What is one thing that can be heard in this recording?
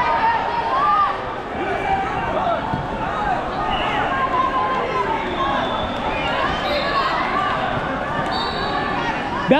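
A large crowd of children and adults chatters and calls out in a big echoing hall.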